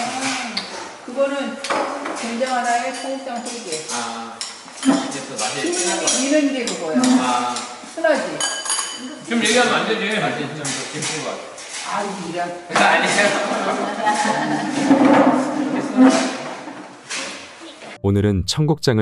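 A man and a woman talk and laugh nearby.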